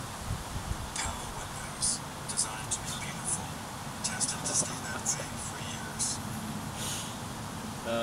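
A man scratches his head with a crisp rustling sound.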